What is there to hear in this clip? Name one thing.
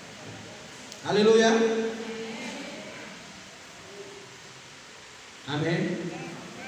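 A man speaks into a microphone through loudspeakers in a large echoing hall.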